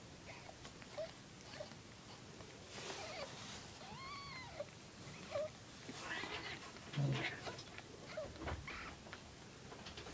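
Tiny kittens mew in short, high squeaks close by.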